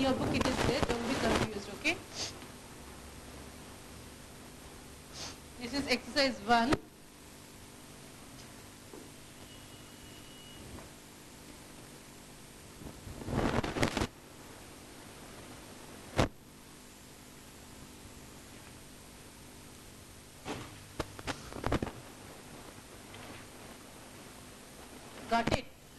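A woman speaks calmly and close by, in short bursts with pauses.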